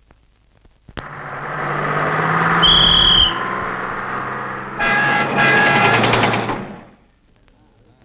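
A bus engine roars as the bus drives closer.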